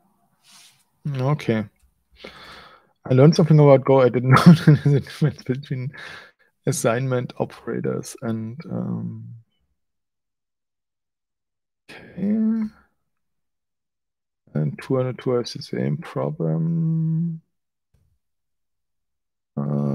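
A man talks calmly and casually into a close microphone, in short bursts.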